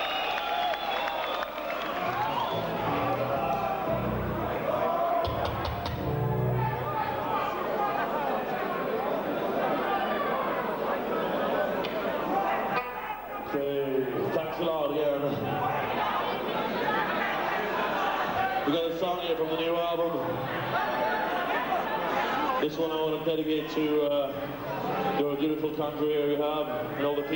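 A band plays loud music in a large echoing hall.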